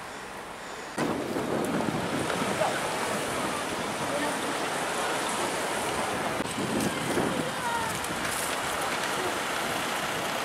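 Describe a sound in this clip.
City traffic rumbles along a busy street outdoors.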